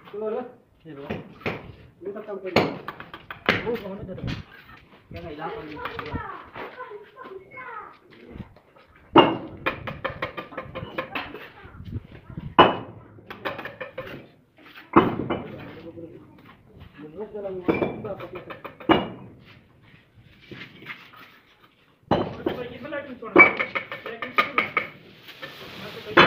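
Bricks knock and clack as they are set down.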